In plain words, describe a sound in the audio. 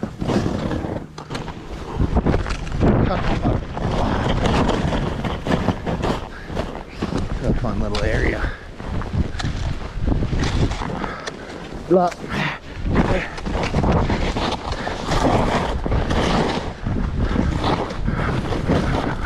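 Wind rumbles over a small microphone.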